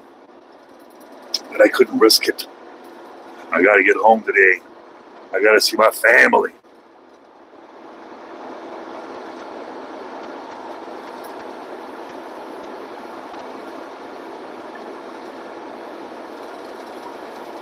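A vehicle's engine and tyres hum steadily on a highway.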